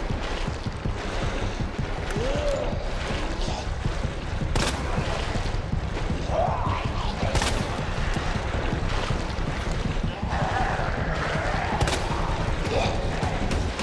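Footsteps splash slowly through shallow water.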